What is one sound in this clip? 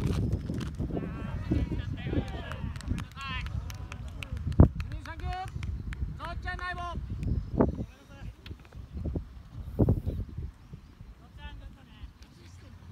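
Young players shout to each other in the distance outdoors.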